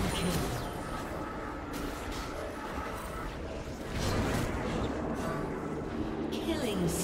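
Video game spell effects whoosh and crackle in short bursts.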